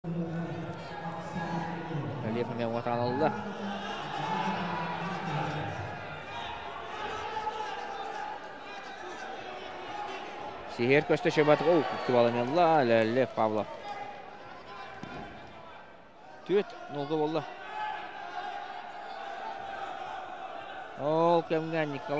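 A large indoor crowd murmurs steadily in an echoing hall.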